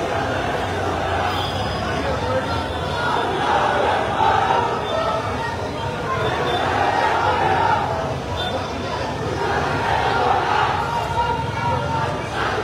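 A large crowd of men chants and cheers loudly nearby, outdoors.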